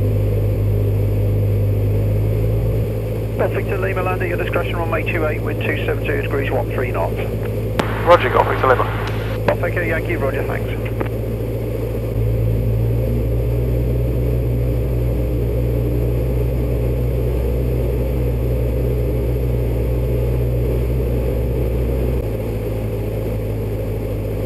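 A small propeller plane's engine drones steadily, changing pitch now and then.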